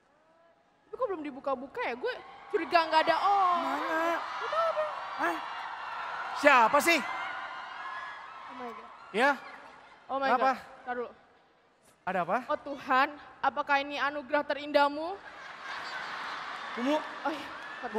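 A young woman speaks animatedly through a microphone.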